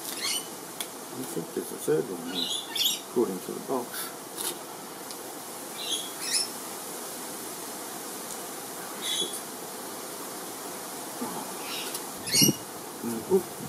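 Small plastic clicks and taps sound close by.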